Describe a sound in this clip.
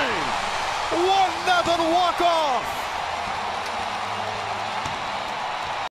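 A large crowd cheers loudly in a big open stadium.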